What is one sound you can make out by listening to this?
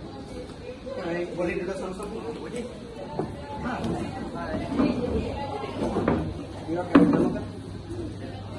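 Teenage boys talk to each other.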